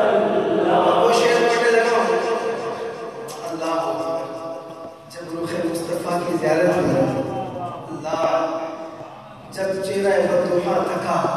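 A man sings melodically into a microphone, heard through loudspeakers in an echoing hall.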